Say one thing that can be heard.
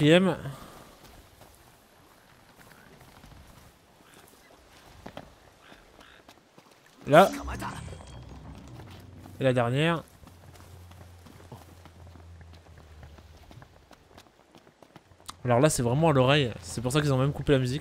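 Footsteps run over grass and rock.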